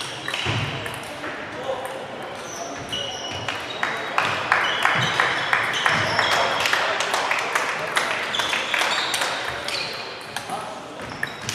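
Table tennis balls click against paddles and tables in a large echoing hall.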